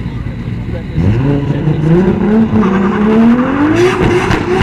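A car engine revs loudly, rising in pitch.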